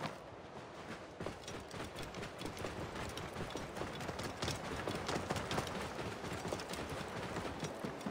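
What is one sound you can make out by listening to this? Camel hooves thud steadily on sandy ground.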